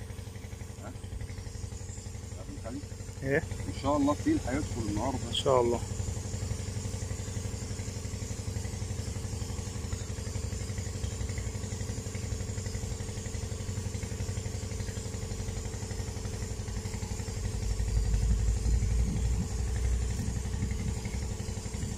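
A spinning reel turns as line is wound in.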